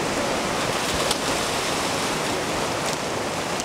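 A man splashes while swimming.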